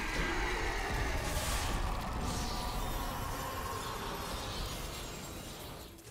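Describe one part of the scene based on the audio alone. A huge blast roars as a monster dies.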